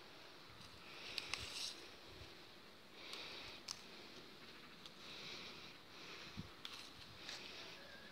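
Leaves rustle as a hand pulls at a fruit-laden branch.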